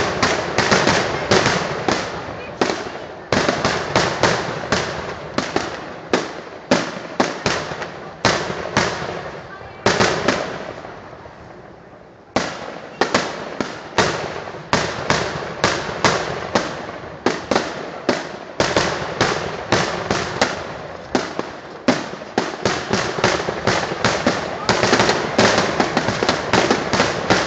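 Fireworks burst with loud, rapid booms that echo away.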